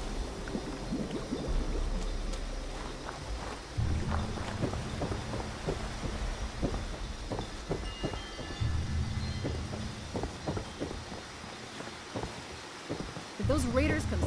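Footsteps thud on wooden stairs and floorboards.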